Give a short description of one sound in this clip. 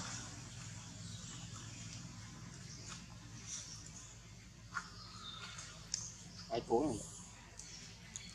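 A baby monkey scratches and tugs at a dry coconut husk, making soft rustles and scrapes.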